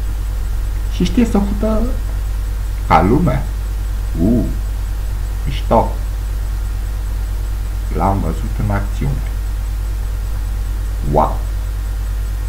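A man speaks in short, animated bursts close to a microphone.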